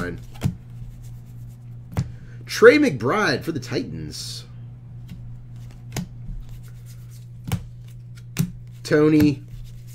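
Trading cards shuffle and click in hands.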